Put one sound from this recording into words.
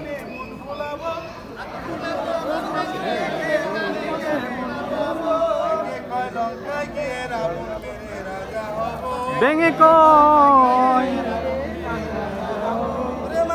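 An elderly man chants a prayer aloud outdoors.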